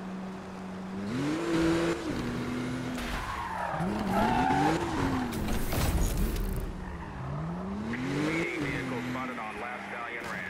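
Tyres screech as a car drifts around a corner.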